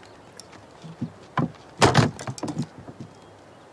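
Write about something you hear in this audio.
Swords thud down onto a wooden table.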